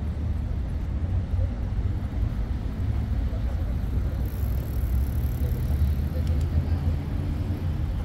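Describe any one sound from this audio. Bicycle tyres roll over paving stones.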